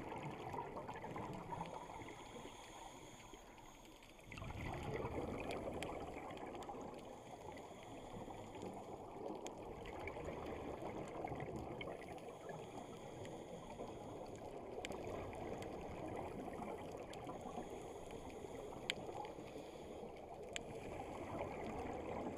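Exhaled bubbles rumble and gurgle underwater.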